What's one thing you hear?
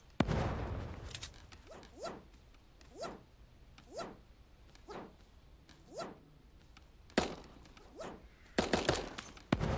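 Loud gunshots crack and boom, with short echoing tails.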